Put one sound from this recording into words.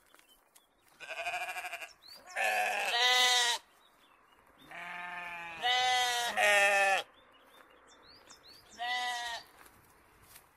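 Sheep bleat close by, again and again.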